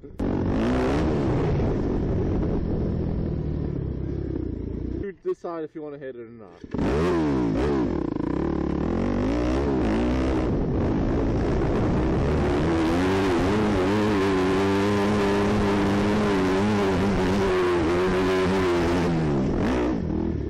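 A dirt bike engine revs and roars up close.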